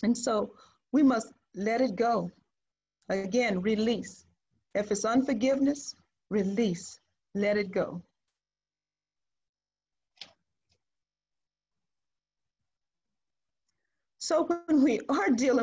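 A woman speaks calmly through an online call microphone, pausing now and then.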